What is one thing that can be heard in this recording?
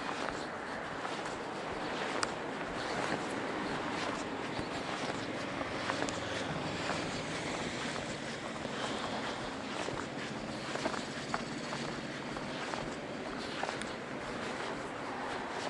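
Wind buffets and rumbles steadily outdoors.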